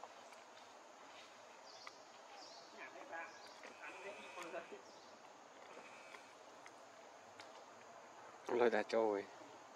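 A small monkey chews and munches on fruit close by.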